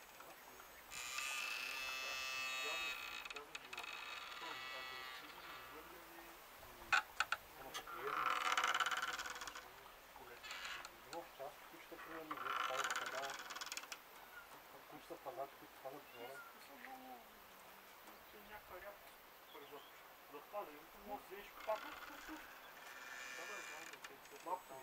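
A wooden gate creaks on its hinges as it swings back and forth.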